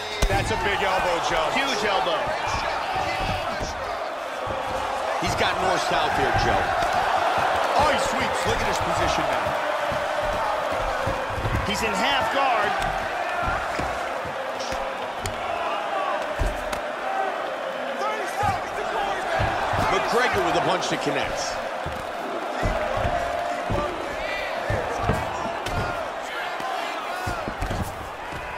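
A crowd roars and cheers steadily in a large arena.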